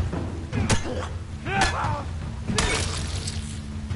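Glass smashes.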